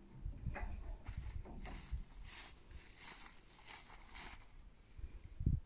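Footsteps crunch through dry wheat stubble.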